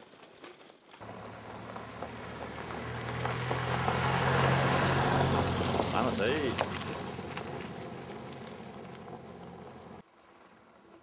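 Bicycle tyres crunch over a gravel track.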